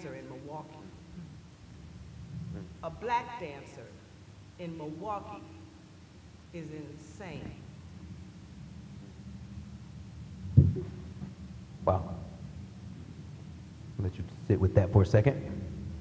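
An older man speaks slowly into a microphone over loudspeakers in a large echoing hall.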